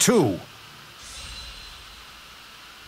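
A sharp magical slash whooshes through the air.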